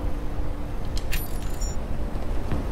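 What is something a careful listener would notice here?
A short electronic chime sounds as a message closes.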